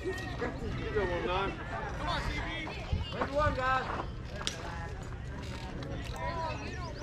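Young men call out and chatter across an open outdoor field.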